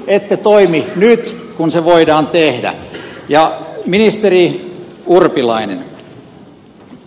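A middle-aged man speaks firmly into a microphone in a large hall.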